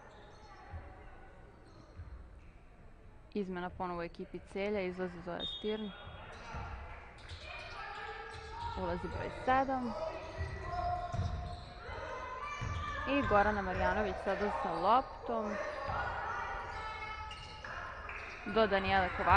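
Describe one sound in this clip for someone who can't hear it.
A basketball bounces on a wooden court in an echoing hall.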